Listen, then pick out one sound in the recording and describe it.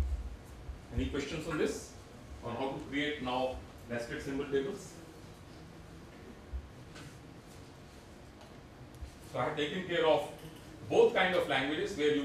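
A man lectures calmly, heard close in a small room.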